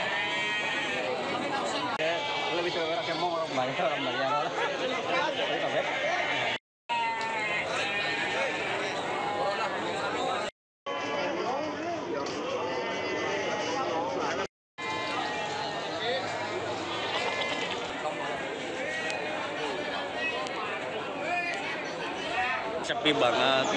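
A crowd of men chatters loudly outdoors.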